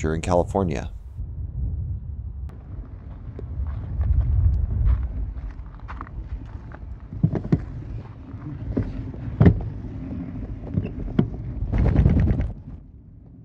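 Wheels roll and crunch over dirt and pavement.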